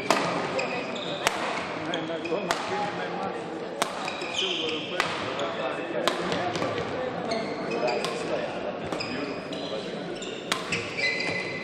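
Rackets strike a shuttlecock in a quick rally, echoing in a large hall.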